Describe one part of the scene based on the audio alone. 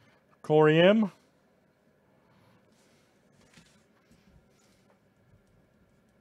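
A trading card slides into a plastic sleeve with a soft rustle.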